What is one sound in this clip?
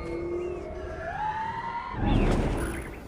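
An eagle screeches with a long, wavering cry.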